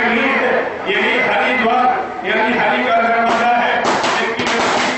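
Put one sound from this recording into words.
An elderly man speaks into a microphone, heard through a loudspeaker.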